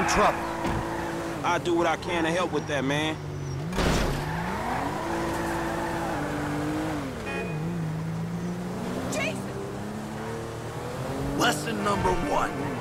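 A car engine hums steadily and revs up and down.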